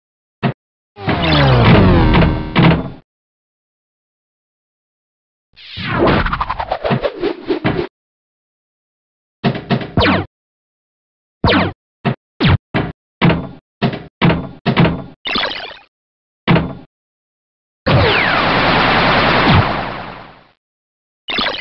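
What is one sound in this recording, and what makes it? A computer pinball game plays long sweeping electronic sound effects.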